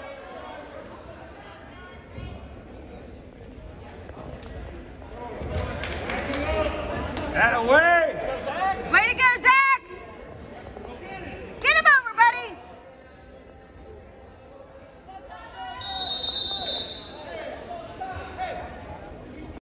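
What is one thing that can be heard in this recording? Spectators talk and call out in a large echoing hall.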